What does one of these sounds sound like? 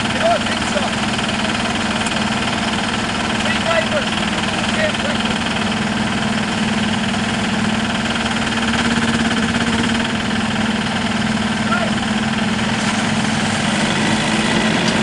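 A tractor engine roars steadily under heavy load.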